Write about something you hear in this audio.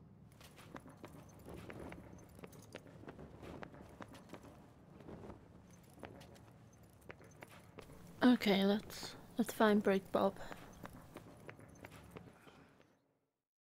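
Footsteps tap lightly on a stone floor.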